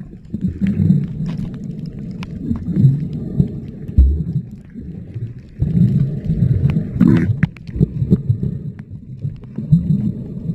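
Water burbles and rushes with a dull, muffled underwater sound.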